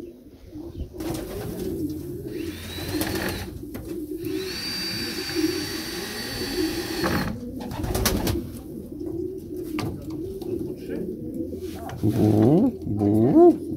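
Pigeons coo softly and steadily.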